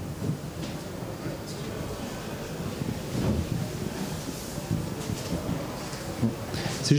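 A man speaks through a headset microphone in a large echoing hall.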